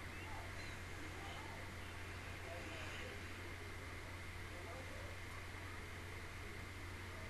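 A woman speaks softly and muffled, close to a microphone.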